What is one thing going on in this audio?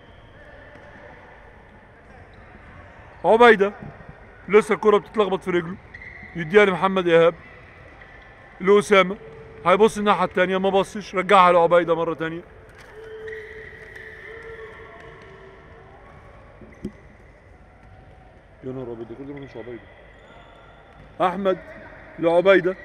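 Sneakers squeak and thud on a hard floor in a large echoing hall.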